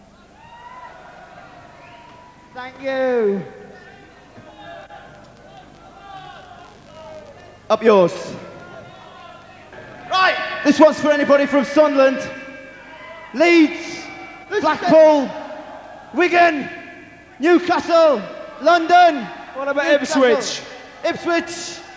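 A band plays music live on stage.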